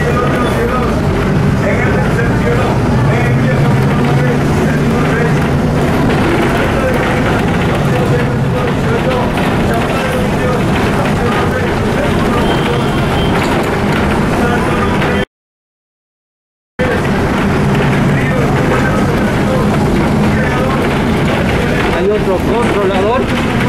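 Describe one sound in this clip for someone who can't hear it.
Cars and vans drive past on the road.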